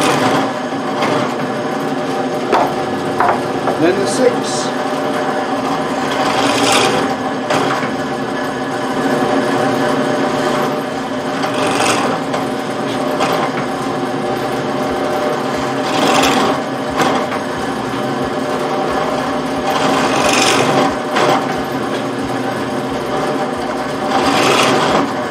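A band saw blade rasps as it cuts into a block of wood.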